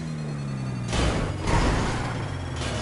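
A truck crashes with loud thuds.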